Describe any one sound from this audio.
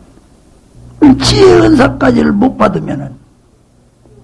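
An elderly man speaks forcefully into a microphone.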